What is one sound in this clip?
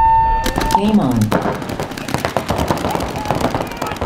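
Paintball markers fire in quick, sharp pops.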